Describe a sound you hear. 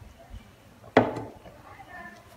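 A metal cup is set down on a table with a sharp knock.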